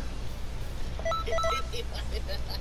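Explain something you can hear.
A short electronic chime rings twice.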